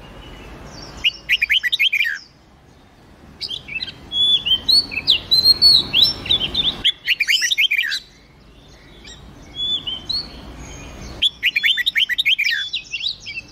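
Songbirds sing with quick trills and sweet whistles.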